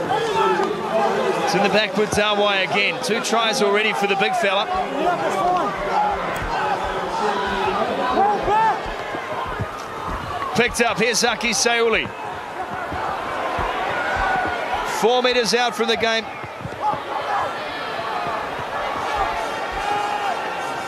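A large crowd roars and cheers in an open stadium.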